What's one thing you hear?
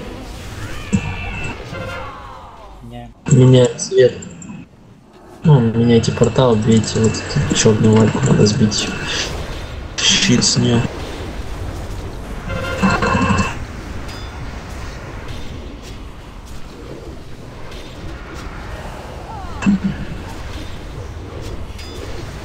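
Magic spells whoosh and crackle in a fierce battle.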